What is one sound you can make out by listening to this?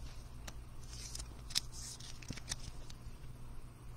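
A card slides into a plastic sleeve.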